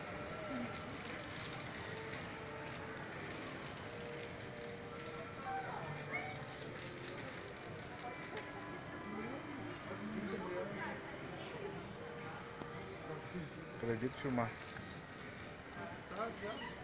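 Voices murmur in a busy indoor space.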